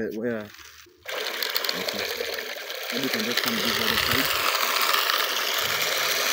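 Dry grain pours and patters into a plastic bucket.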